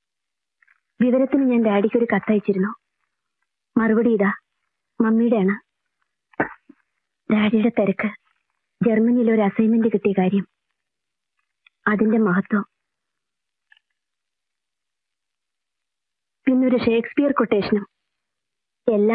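A woman speaks calmly and earnestly, close by, with pauses.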